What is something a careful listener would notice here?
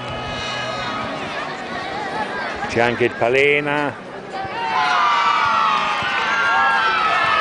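Children shout and call out in the distance outdoors.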